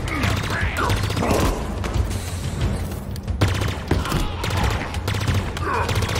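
An energy gun fires in rapid crackling bursts.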